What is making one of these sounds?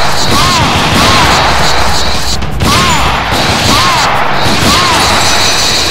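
Gunshots ring out one after another, each with a short, sharp whine.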